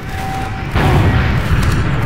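A rocket explodes with a loud blast.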